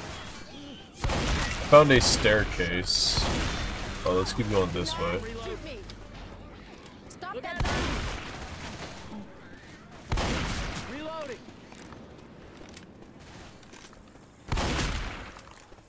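A shotgun fires loud blasts with a booming echo.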